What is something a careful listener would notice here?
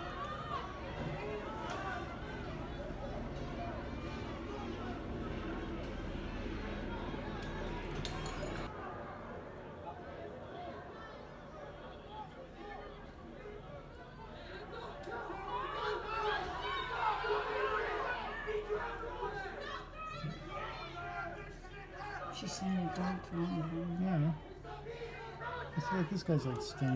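A large crowd of men and women chants and shouts outdoors, heard from a distance.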